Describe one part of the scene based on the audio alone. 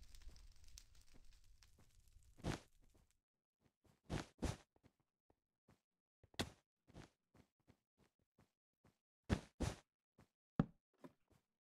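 Blocks are placed with short, soft clicks.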